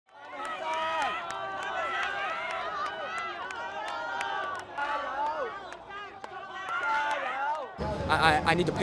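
A crowd of people shouts and chants loudly outdoors.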